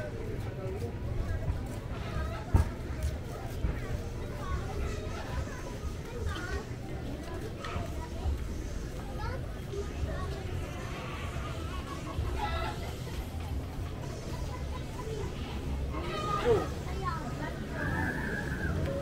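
People's voices chatter faintly outdoors.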